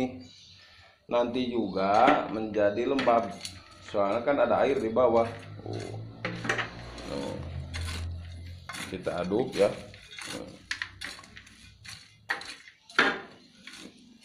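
A metal scoop scrapes and stirs inside a plastic bucket.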